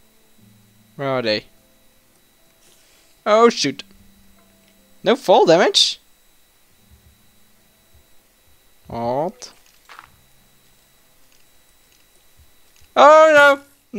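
A young man speaks in short, animated bursts close to a microphone.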